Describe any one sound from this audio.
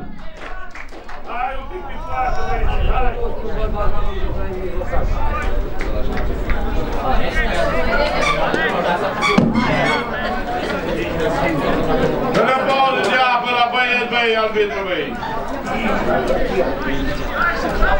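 Young men shout and talk across an open field.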